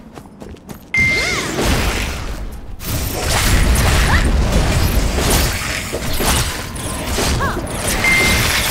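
Heavy blows and magic blasts crash as a warrior fights a monster.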